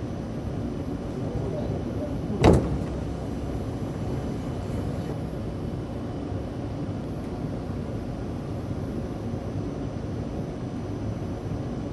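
A low steady rumble fills a train carriage.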